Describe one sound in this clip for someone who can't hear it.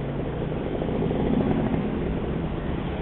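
A passing motorbike engine drones nearby.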